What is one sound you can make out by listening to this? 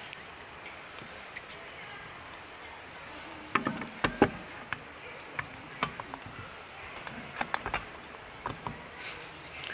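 Small plastic parts click and tap as they are fitted together.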